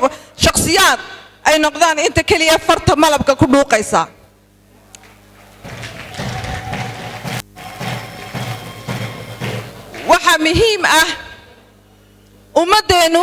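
A woman speaks with animation into a microphone over a loudspeaker.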